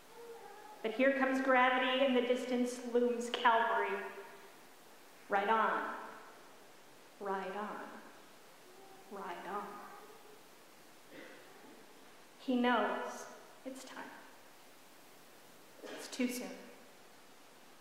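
A middle-aged woman speaks slowly and expressively into a microphone in a large echoing hall.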